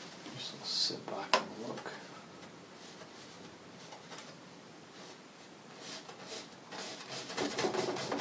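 A brush dabs and scrapes on canvas.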